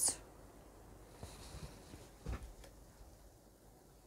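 A card is laid down on a table with a soft tap.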